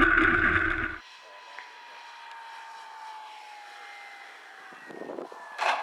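A model airplane buzzes past with a falling pitch.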